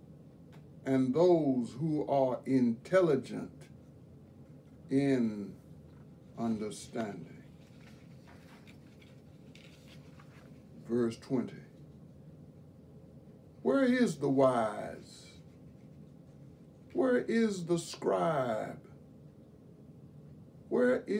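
An elderly man reads aloud slowly and calmly, close by, with long pauses.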